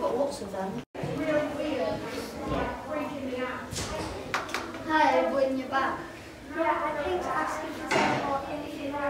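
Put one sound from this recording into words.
A young girl speaks.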